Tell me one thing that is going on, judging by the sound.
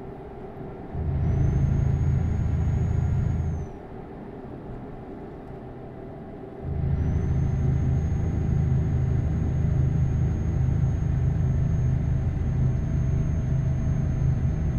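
Tyres rumble loudly over a rough road.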